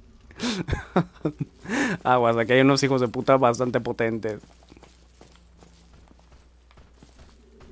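Armoured footsteps clank on stone as a figure runs.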